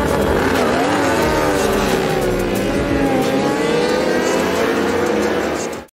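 Motorcycles pull away and accelerate into the distance.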